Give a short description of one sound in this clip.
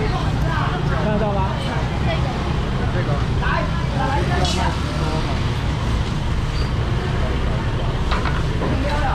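Voices of men and women chatter nearby.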